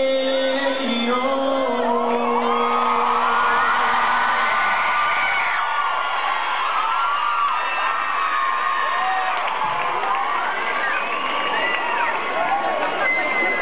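A crowd cheers and screams loudly in a large echoing hall.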